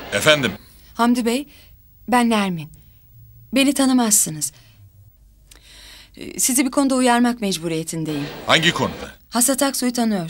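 A woman talks calmly into a phone nearby.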